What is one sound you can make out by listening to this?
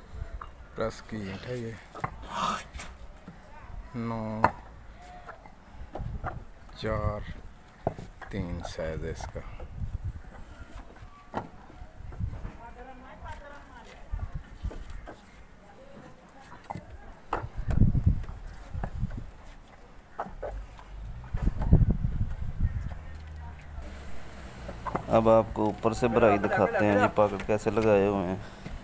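Bricks clack and knock as they are stacked.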